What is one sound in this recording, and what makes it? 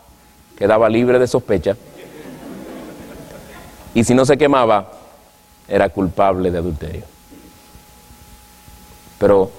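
A man speaks calmly into a microphone in short phrases, with pauses between them.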